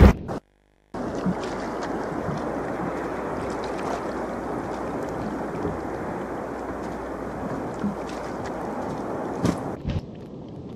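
Water splashes as figures wade through shallow surf.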